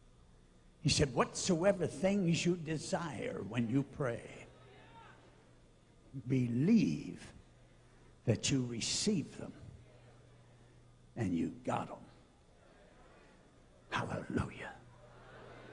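An elderly man preaches forcefully into a microphone, in bursts with pauses.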